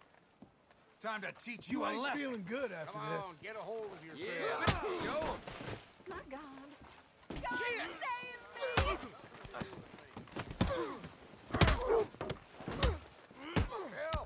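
Men shout and argue angrily.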